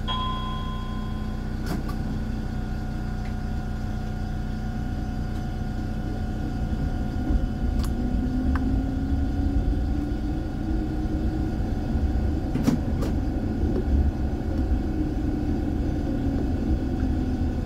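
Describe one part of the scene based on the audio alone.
A tram hums and rumbles steadily along its rails.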